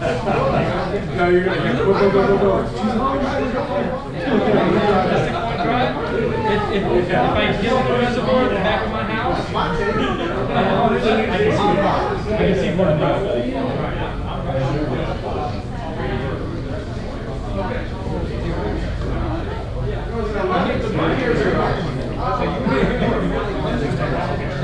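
Several men talk at once in a room with some echo.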